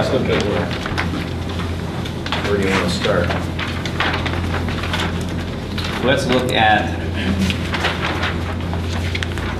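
A man speaks calmly across a room.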